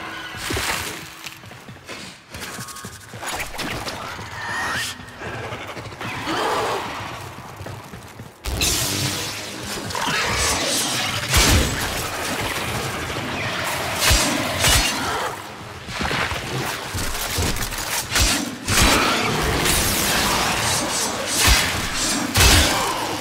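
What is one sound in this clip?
Gunfire and energy blasts crackle and boom in quick bursts.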